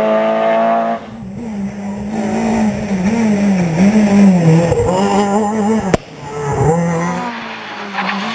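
A rally car engine roars past up close.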